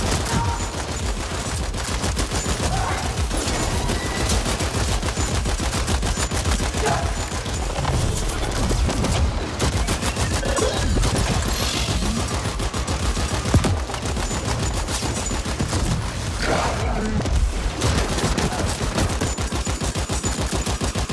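Rapid gunfire rattles.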